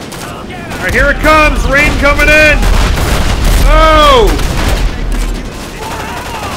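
Explosions boom and rumble loudly.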